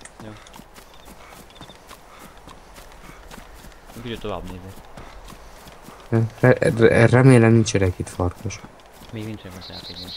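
Footsteps run quickly on a hard road.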